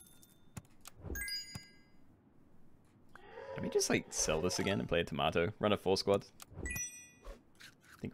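Short bright electronic chimes ring out.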